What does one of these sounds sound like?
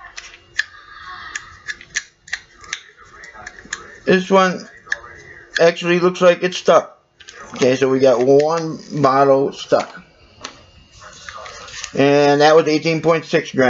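A plastic pill bottle cap clicks and rattles.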